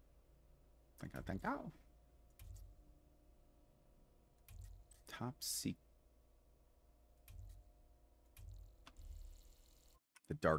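Short electronic blips sound as menu options change.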